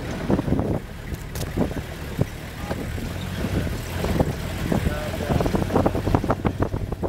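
Tall plants brush and scrape against the side of a vehicle.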